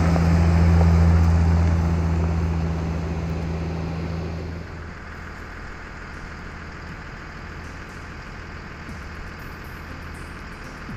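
A heavy vehicle's diesel engine rumbles loudly, then fades as the vehicle drives away.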